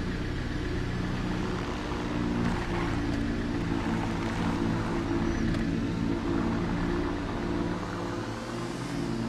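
A van's engine hums steadily as it drives along a road.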